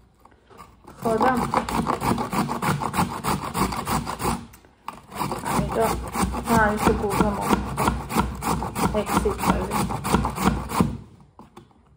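A carrot is rubbed quickly up and down a metal grater with a rapid rasping scrape.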